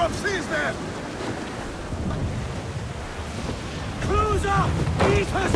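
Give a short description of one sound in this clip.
Strong wind blows over open sea.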